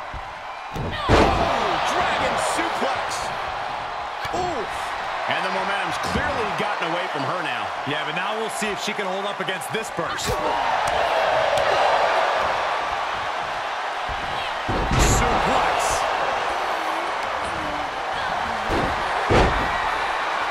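Bodies slam onto a wrestling ring mat.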